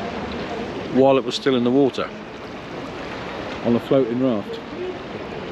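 A middle-aged man speaks close to the microphone in short, lively bursts.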